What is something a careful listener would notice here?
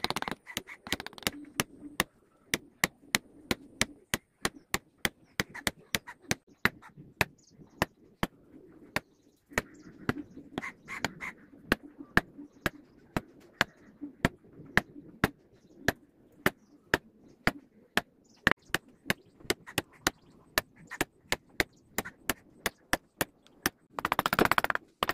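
A mallet taps steadily on a chisel carving wood.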